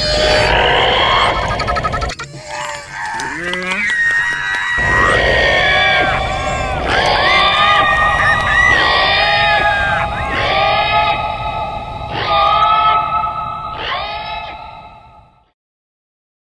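Toy dinosaurs let out loud, shrill electronic roars and screeches.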